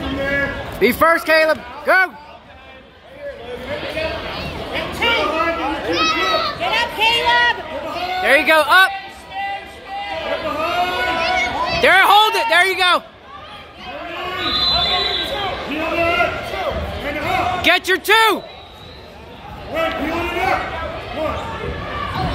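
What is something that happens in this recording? Young wrestlers thud and scuffle on a mat.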